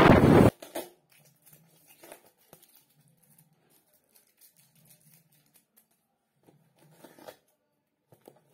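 Hands tap and pat a cardboard box.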